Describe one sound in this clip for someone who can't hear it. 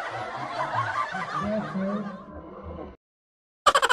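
Young men laugh loudly.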